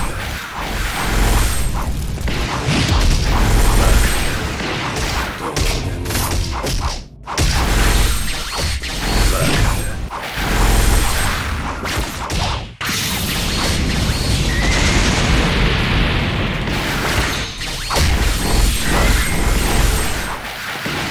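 Energy blasts whoosh and burst in rapid succession.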